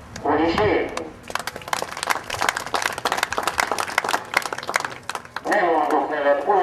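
A man shouts loudly outdoors.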